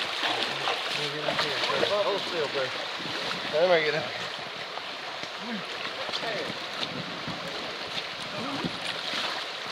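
A man talks and laughs nearby.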